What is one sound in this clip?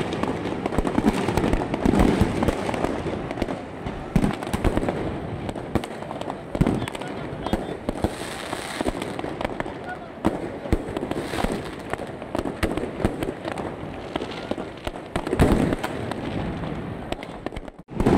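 Fireworks pop and crackle repeatedly outdoors.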